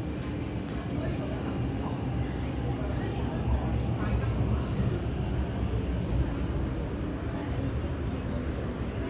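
A train rumbles low alongside a platform.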